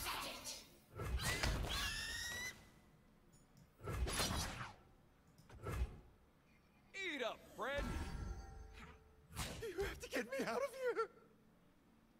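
Card game sound effects whoosh and thud in bursts.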